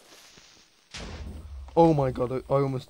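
An explosion booms with a low rumble.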